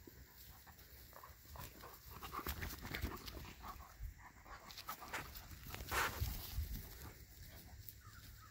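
Two dogs growl and snarl as they play-fight up close.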